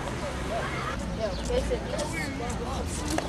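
Children chatter nearby outdoors.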